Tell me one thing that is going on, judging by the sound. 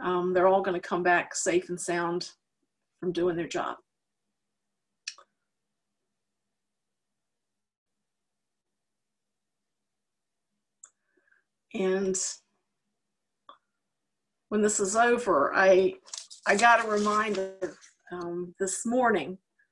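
A middle-aged woman talks calmly over an online call, in short bursts with pauses.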